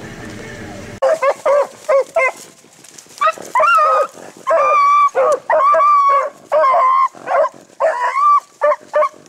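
Hounds bay and howl loudly close by.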